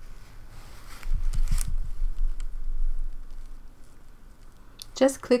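Cloth rustles and rubs close by.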